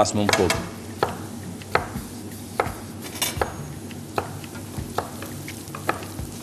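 A knife chops on a cutting board in regular knocks.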